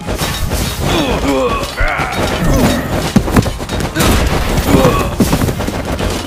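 A club pounds the ground with heavy thuds.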